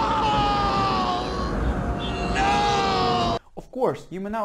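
A young man screams out in anguish.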